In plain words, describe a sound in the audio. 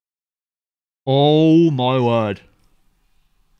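A young man groans loudly in dismay.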